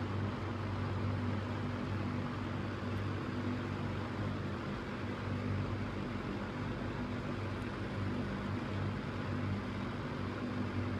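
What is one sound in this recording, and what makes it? An electric fan whirs steadily, its blades rushing air with a low hum.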